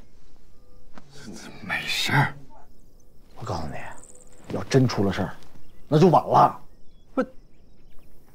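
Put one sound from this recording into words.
A man speaks urgently and with animation nearby.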